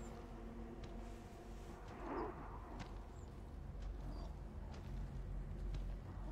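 Footsteps rustle slowly through grass.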